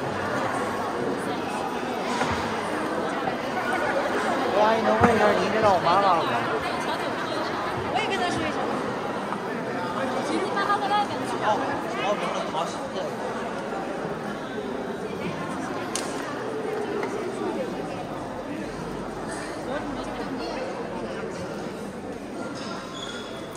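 A choir of young men and women sings together in a large echoing hall.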